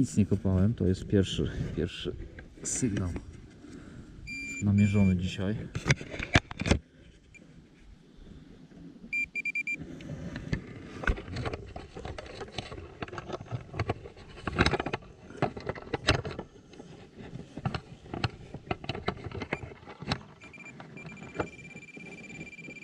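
A hand scrapes through loose soil.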